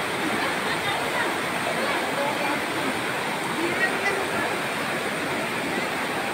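A river rushes and churns loudly close by.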